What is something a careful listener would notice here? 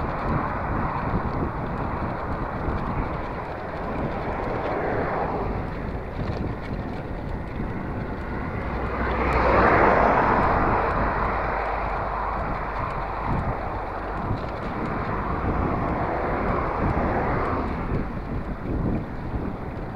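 Wind buffets the microphone while riding outdoors.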